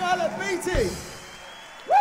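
A brass band plays a loud final chord and stops.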